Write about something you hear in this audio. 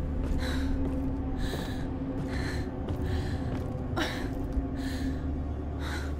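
A wooden ladder creaks as someone climbs it.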